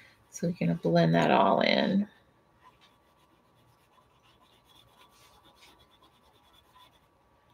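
An oil pastel scratches softly across paper.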